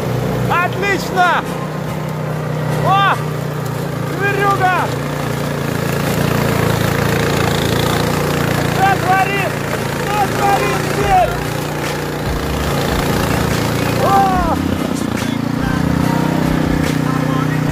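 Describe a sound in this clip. A snowblower engine roars steadily.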